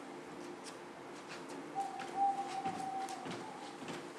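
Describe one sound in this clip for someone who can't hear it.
A wooden ladder knocks and clatters as it is carried off.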